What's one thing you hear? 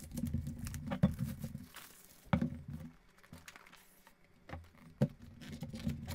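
A cardboard box rustles as hands open it.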